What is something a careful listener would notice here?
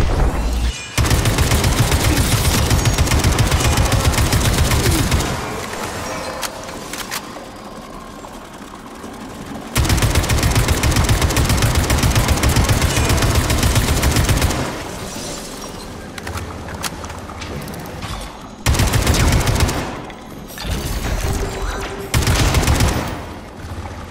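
An automatic rifle fires rapid bursts of loud shots.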